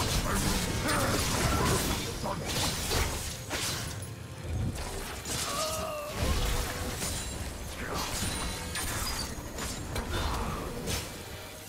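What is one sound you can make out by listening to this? Game spell effects whoosh and crackle in rapid bursts.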